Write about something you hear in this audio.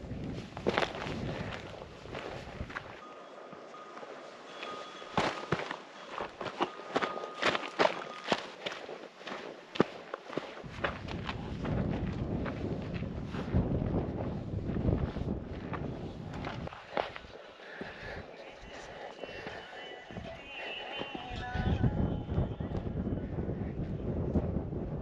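Boots crunch on dry gravel with each step.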